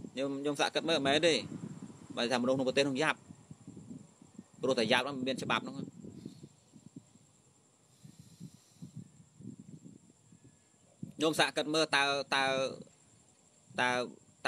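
A young man speaks calmly close to the microphone, in short bursts with pauses.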